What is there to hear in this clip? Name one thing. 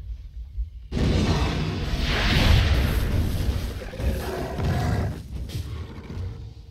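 Magic blasts and impacts clash in a fight.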